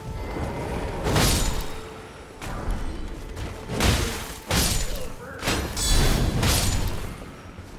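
Swords clang and strike in a close fight.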